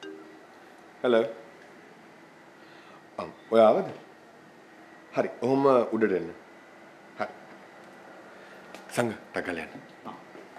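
A young man talks on a phone in short phrases.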